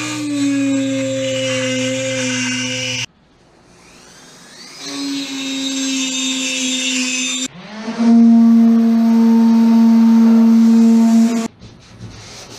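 A small power tool whines loudly in several bursts.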